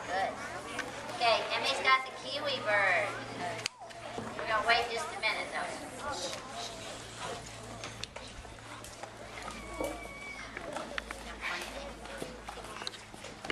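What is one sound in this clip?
Children chatter nearby outdoors.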